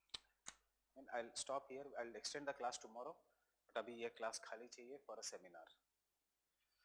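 A man speaks calmly and clearly through a clip-on microphone.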